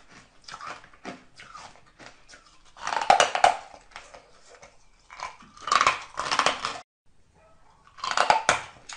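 A woman chews noisily close to a microphone.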